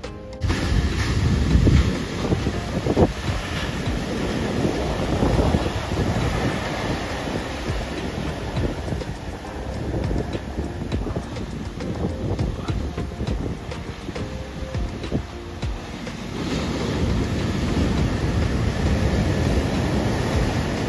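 Waves crash and roar onto the shore close by.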